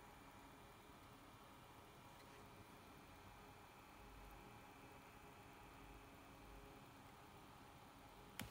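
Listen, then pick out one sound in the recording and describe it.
Metal tweezers scrape and tick faintly against a circuit board.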